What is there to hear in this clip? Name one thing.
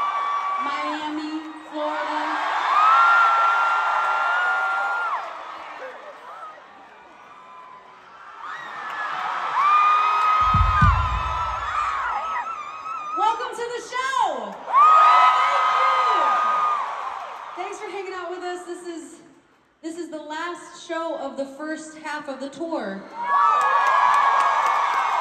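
A crowd of young fans screams and sings along close by.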